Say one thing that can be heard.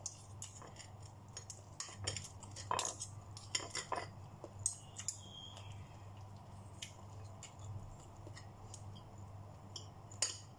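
A metal spoon and fork clink and scrape against a plate.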